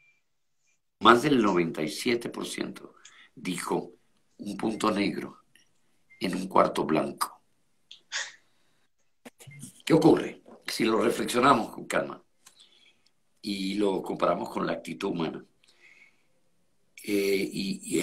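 An elderly woman speaks with animation over an online call.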